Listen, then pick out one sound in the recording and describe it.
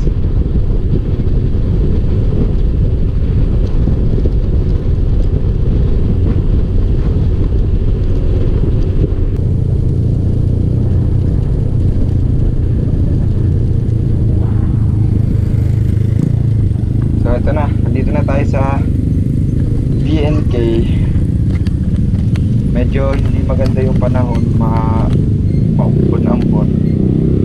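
A motorcycle engine hums while riding.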